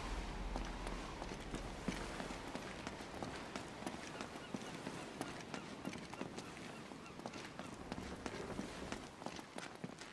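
Footsteps run on stone steps.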